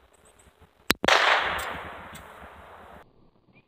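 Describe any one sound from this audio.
A pistol fires a single loud shot that echoes outdoors.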